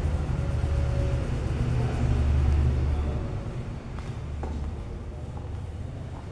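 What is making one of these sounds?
Fingers rub and press through hair on a scalp.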